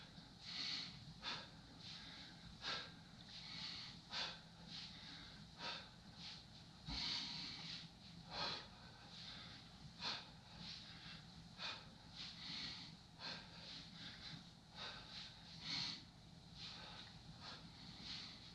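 Bare feet shuffle softly on a floor mat.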